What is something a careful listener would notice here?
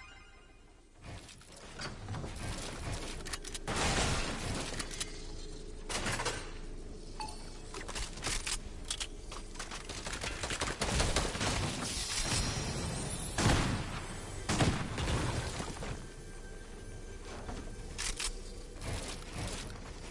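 Wooden building pieces clatter and thud in quick bursts in a video game.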